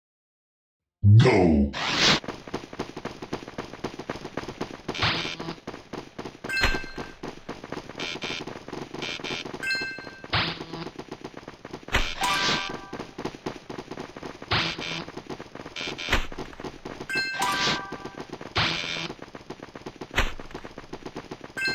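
Lively electronic game music plays with quick zapping effects.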